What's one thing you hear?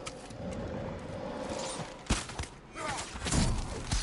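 An arrow is loosed from a bow.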